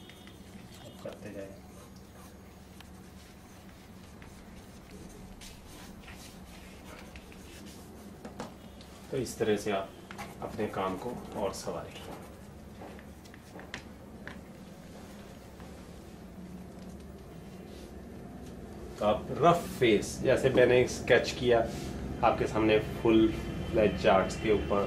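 A marker scratches softly across paper.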